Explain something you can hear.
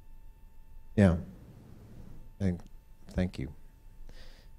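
A man speaks in short bursts through a microphone in a large room.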